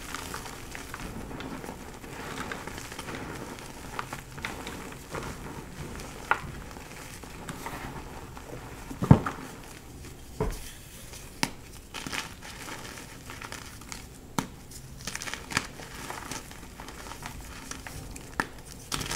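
Hands squish and rub through soft powder.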